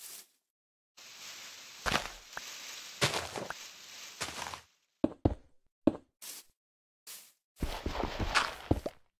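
Dirt crunches and crumbles as it is dug away.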